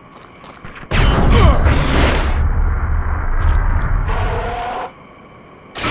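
A burst of flames roars and rumbles.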